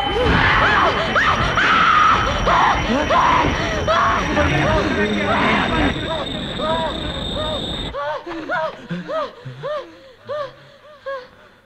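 A woman screams in anguish.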